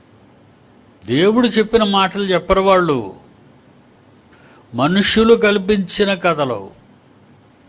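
An elderly man speaks calmly and deliberately into a close microphone, in short phrases with pauses.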